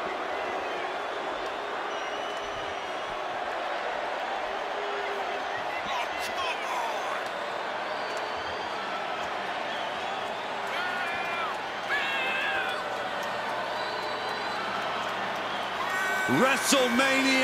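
A large crowd cheers and roars steadily in a vast echoing arena.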